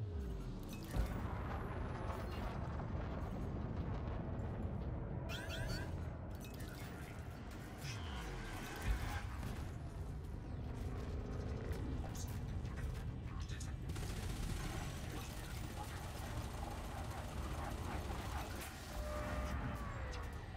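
A deep spaceship engine rumbles steadily.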